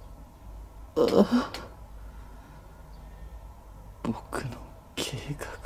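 A young man groans and murmurs weakly.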